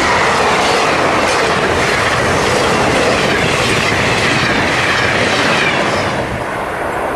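A train rushes past with a loud roar of wheels on the rails.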